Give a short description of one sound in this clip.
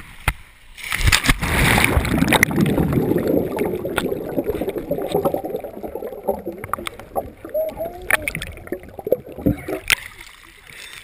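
Muffled underwater rushing and bubbling fills the sound.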